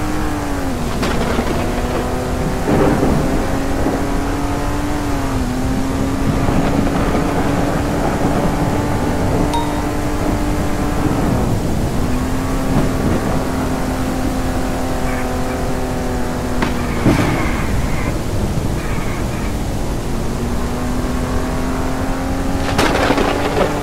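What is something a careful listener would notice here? A car engine hums steadily, its pitch shifting as the car changes gear.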